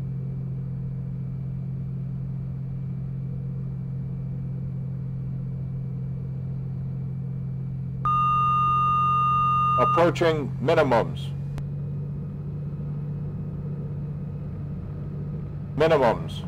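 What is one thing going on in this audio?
A small plane's engine drones steadily.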